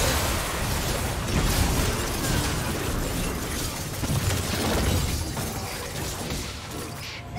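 Magic spells crackle and burst in a video game battle.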